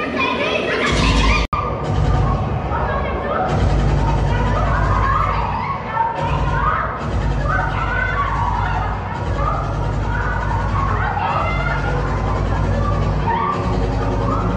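A deep, thumping beat drives the music.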